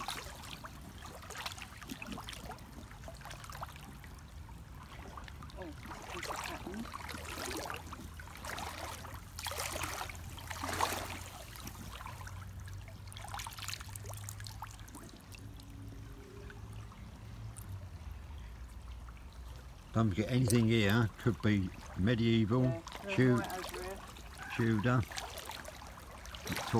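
Shallow water trickles and babbles over stones.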